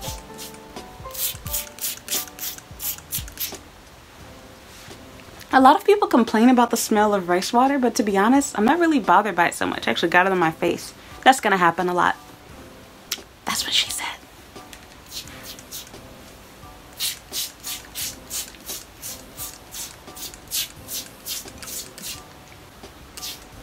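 A spray bottle spritzes in quick repeated bursts.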